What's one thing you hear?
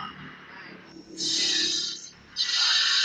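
A sword swings with a heavy whoosh.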